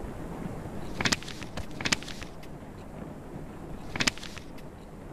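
A photograph slides and rustles across paper.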